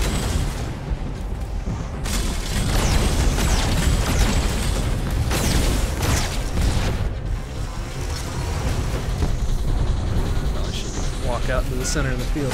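Rapid electronic gunfire blasts and rattles.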